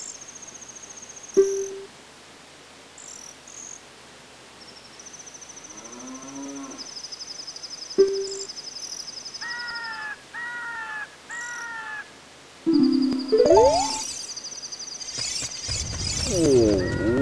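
Video game text blips and chimes sound as dialogue scrolls.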